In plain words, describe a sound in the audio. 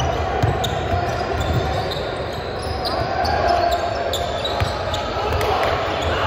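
A basketball bounces on the court.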